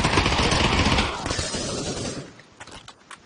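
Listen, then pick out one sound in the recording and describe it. A submachine gun fires a rapid burst indoors.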